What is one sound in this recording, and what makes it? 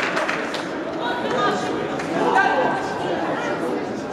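A man referee calls out loudly.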